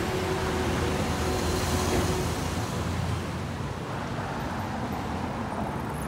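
A van's engine hums as it drives by.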